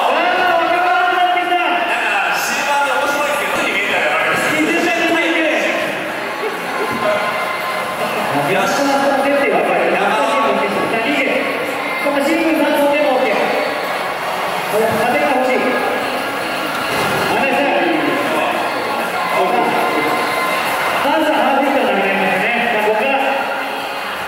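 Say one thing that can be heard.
A man talks with animation through a headset microphone over loudspeakers.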